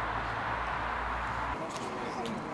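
Wind blows outdoors across open ground.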